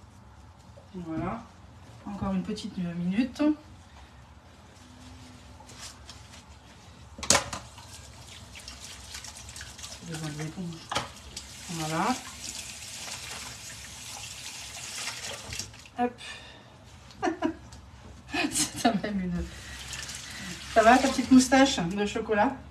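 A woman talks nearby in a lively way.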